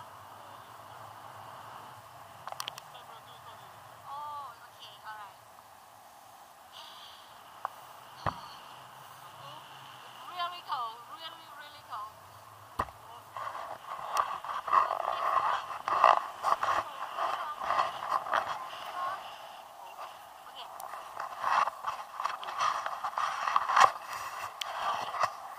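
Wind rushes and buffets loudly past outdoors.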